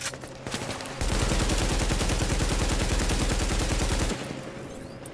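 A rifle fires a rapid, sustained burst up close.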